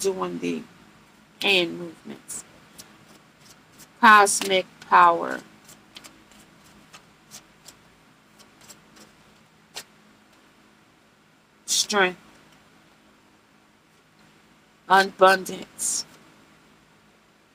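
Cards shuffle and riffle in a woman's hands.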